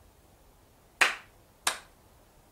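A young man claps his hands twice.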